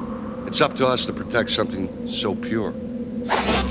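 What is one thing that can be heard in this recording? A man speaks slowly and close by.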